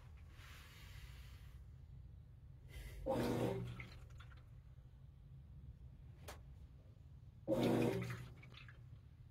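Water sloshes and splashes in a washing machine tub.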